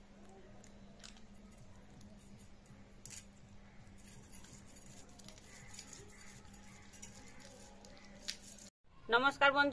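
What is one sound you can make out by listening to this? A cat chews and eats food.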